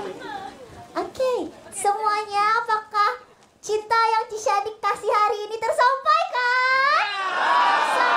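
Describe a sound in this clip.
A young woman speaks animatedly into a microphone over loudspeakers.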